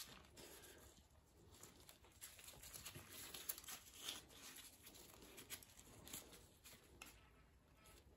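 Metal parts clink and rattle softly close by.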